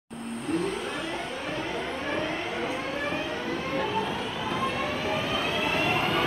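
An electric train pulls into a station, its motors whining and rising in pitch.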